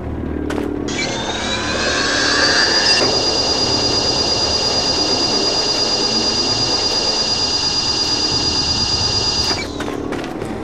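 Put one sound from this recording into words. A high electronic whine hums steadily, then cuts off.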